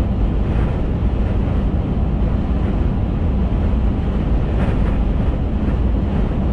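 Wind rumbles against the car's windshield.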